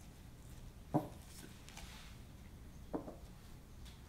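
A paper coffee cup knocks as it is picked up from a wooden table and set back down.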